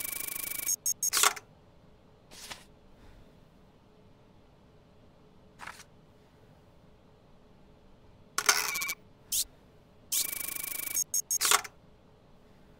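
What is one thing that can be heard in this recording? Short electronic buzzes and beeps sound in bursts.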